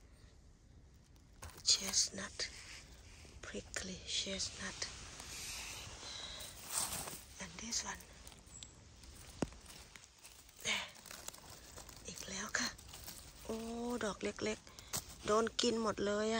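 A knife cuts through a mushroom stem with a soft snap.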